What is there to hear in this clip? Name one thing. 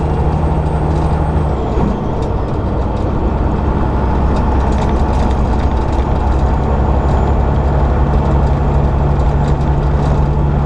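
A truck engine drones steadily while cruising on a highway.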